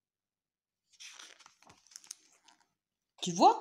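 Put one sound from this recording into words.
A page of a book turns with a soft paper rustle.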